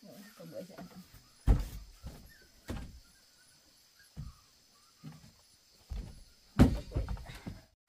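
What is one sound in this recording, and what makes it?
Footsteps thump on a wooden floor.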